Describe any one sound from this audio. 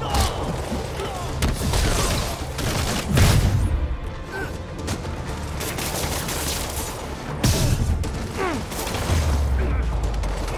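Heavy punches and kicks land with dull thuds.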